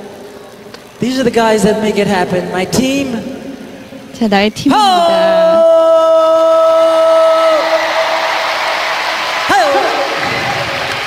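A man sings through a microphone, holding a long note.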